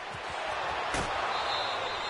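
Football players collide in a hard tackle with a thud.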